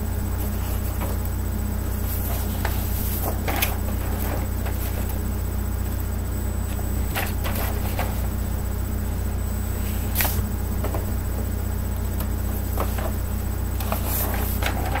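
A middle-aged woman speaks calmly close to a microphone.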